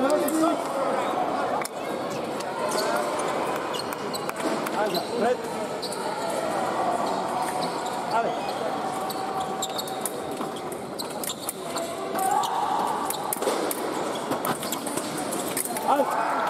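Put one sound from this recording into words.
Fencing shoes squeak and stamp on the floor.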